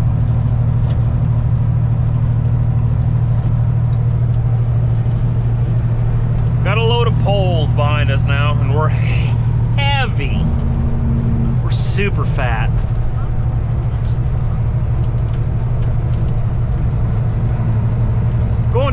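A truck engine rumbles steadily inside the cab.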